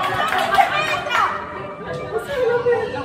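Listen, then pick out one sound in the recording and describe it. Young people cheer and shout excitedly nearby.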